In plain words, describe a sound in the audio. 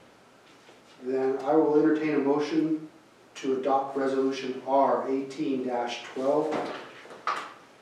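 A man speaks clearly into a microphone.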